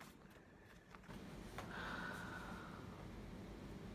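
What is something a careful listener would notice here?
A young woman speaks quietly and close by.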